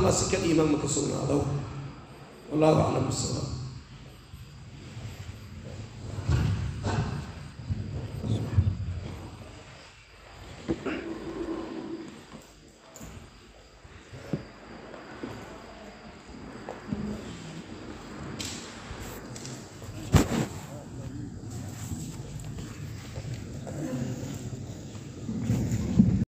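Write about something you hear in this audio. A man speaks calmly and slowly into a microphone, close by.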